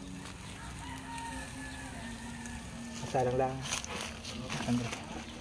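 Meat sizzles and crackles over hot coals outdoors.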